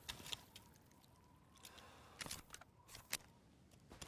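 Metal clicks sound as a pistol magazine is pulled out and pushed back in.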